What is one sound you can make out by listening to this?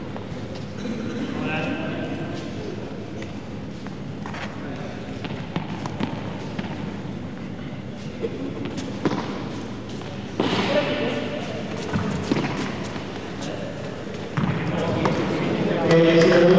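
A ball is struck sharply by rackets and bounces off walls in a large echoing hall.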